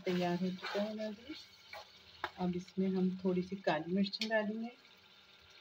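A metal spoon scrapes and stirs in a pan.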